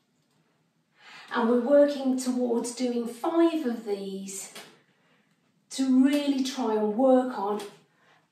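A middle-aged woman speaks calmly and clearly close by, as if instructing.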